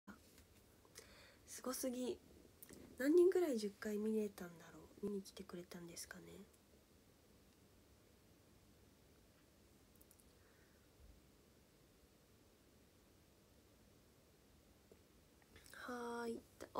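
A young woman talks casually, close to the microphone.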